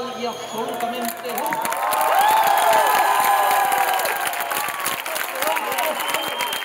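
A large crowd claps hands in rhythm.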